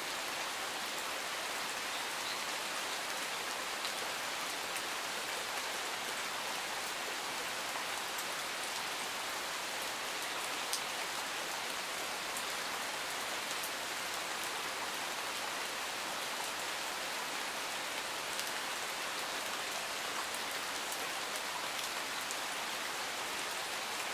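A stream rushes steadily over rocks.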